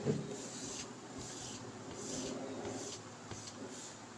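An eraser squeaks and rubs across a whiteboard.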